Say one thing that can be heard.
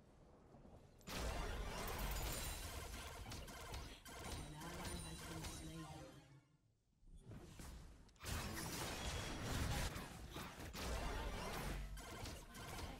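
Game combat effects clash and burst.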